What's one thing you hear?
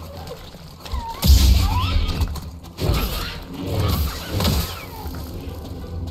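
A laser sword hums and clashes in a fight.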